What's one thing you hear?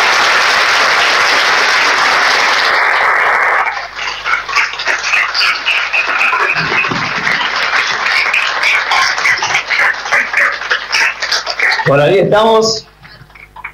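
A crowd applauds and claps steadily.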